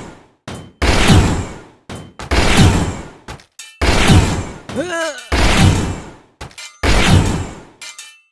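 Heavy whooshing hits land again and again in a game.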